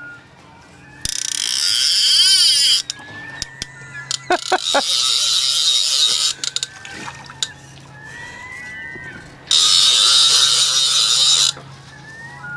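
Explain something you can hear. A fly reel's drag buzzes as a fish pulls line out.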